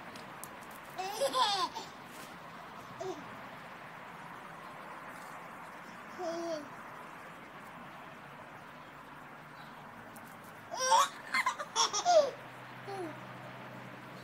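A toddler babbles and squeals close by.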